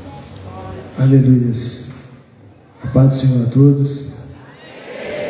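A woman speaks into a microphone, her voice booming over loudspeakers in a large echoing space.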